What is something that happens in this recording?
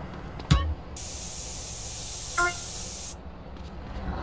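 A spray can hisses in a long, steady burst.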